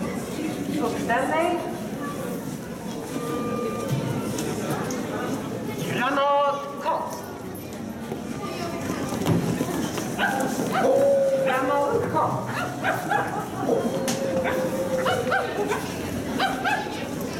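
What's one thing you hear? Young people call out with excitement close by.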